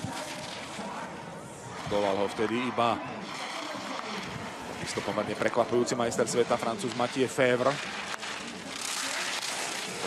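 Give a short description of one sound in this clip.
Skis scrape and hiss over icy snow at speed.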